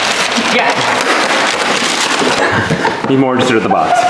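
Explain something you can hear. A cardboard box rattles as it is shaken.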